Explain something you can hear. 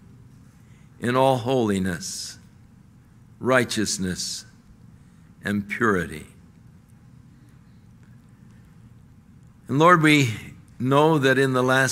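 An elderly man speaks with emphasis into a microphone, in short bursts with pauses.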